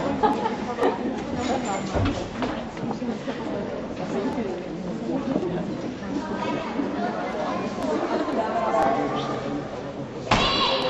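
Many voices chatter in a large echoing hall.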